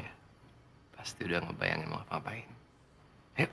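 A young man speaks softly and calmly close by.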